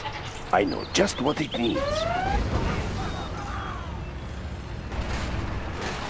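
Gunfire and explosions crackle from a battle in a computer game.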